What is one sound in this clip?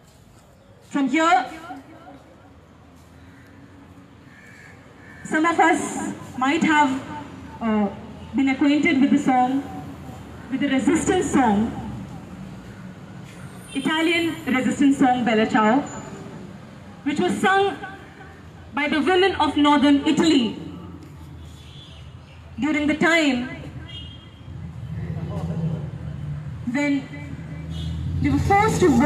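A young woman speaks with passion through a microphone and loudspeaker outdoors.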